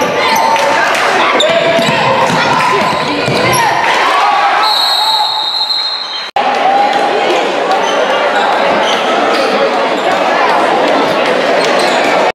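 A large crowd cheers and roars in an echoing gym.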